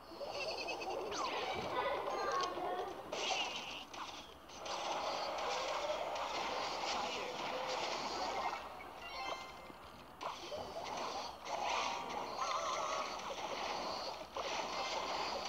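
Small fighters clash with chimes, thuds and bursts of game sound effects.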